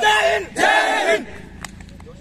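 Young men shout and cheer loudly together outdoors.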